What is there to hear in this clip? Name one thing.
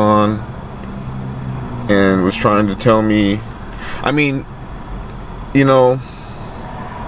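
A man speaks in short bursts close by.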